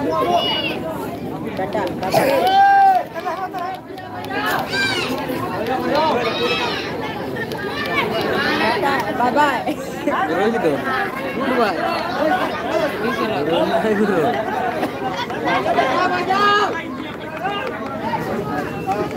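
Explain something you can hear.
A crowd of people chatters and shouts loudly outdoors.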